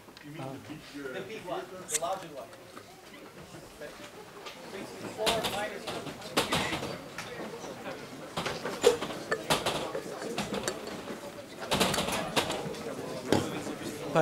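A man lectures in a room with echo, heard through a microphone.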